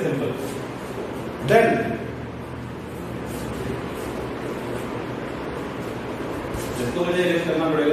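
A man lectures in a calm voice.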